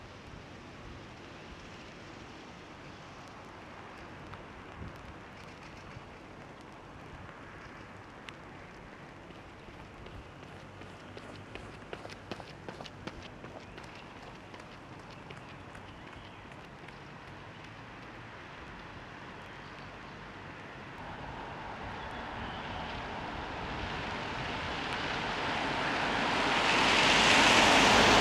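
Light rain patters steadily on wet ground outdoors.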